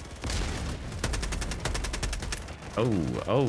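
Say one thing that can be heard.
A rifle fires rapid bursts.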